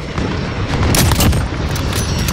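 A sniper rifle fires a single loud shot.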